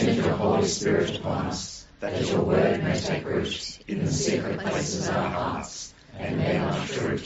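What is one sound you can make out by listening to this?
A group of older men and women read aloud together, heard through an online call.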